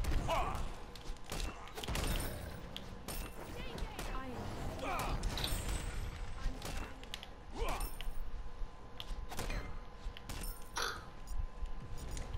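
Weapons clash and strike with sharp metallic hits.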